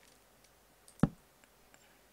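A torch is placed with a short, dull thud.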